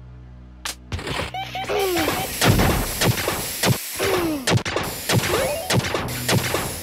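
Sharp blows land again and again with punchy thuds.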